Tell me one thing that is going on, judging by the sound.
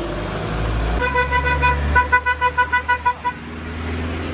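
A vehicle horn beeps in a quick series of short toots.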